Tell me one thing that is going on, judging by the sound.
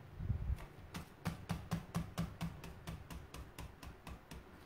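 A brush dabs and taps rapidly on a plate.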